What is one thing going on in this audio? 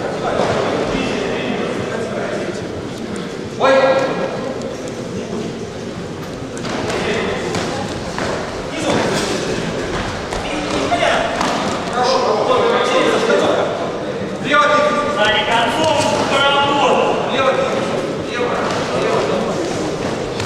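A crowd murmurs and shouts in a large echoing hall.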